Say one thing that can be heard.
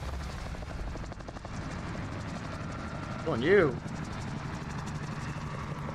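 Helicopter rotors thrum nearby.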